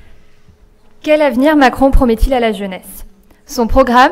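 A young woman speaks through a microphone in a large hall.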